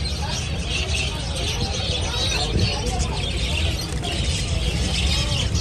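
Wings flutter and flap as small birds fly about.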